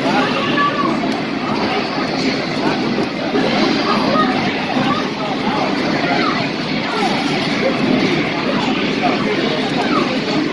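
Game music plays from an arcade machine's speakers.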